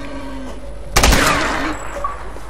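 A gunshot fires sharply.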